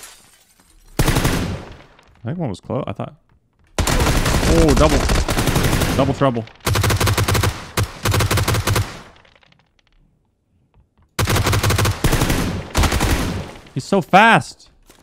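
An automatic rifle fires loud rapid bursts indoors.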